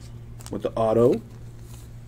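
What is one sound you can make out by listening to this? A plastic wrapper crinkles.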